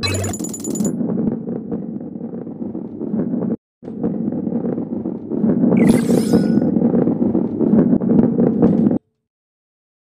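A heavy ball rolls along a track with a low rumble.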